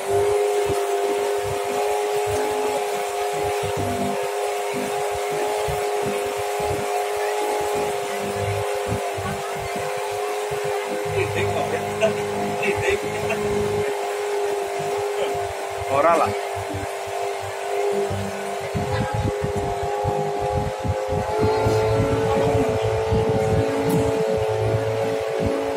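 A boat engine drones steadily throughout.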